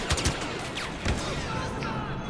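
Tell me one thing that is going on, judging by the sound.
A grenade explodes with a heavy thud.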